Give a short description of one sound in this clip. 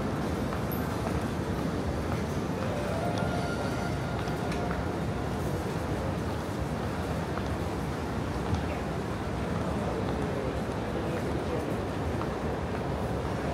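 Many people murmur indistinctly in a large echoing hall.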